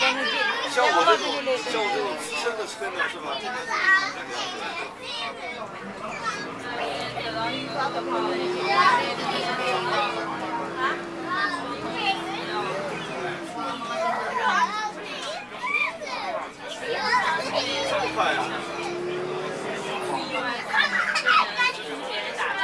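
Many men and women chatter loudly close by.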